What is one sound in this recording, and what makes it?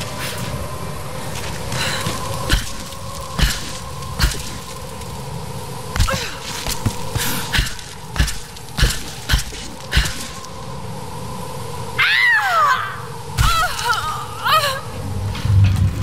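Wind howls steadily outdoors.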